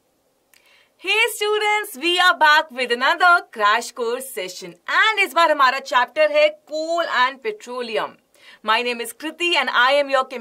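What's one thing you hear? A young woman speaks cheerfully and with animation into a microphone.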